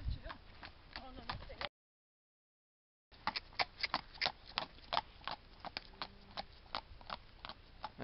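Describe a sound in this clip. A horse's hooves clop on a paved road as the horse trots.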